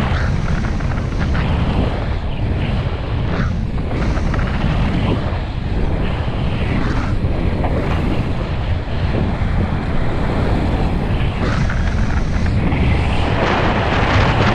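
Wind roars loudly past at speed.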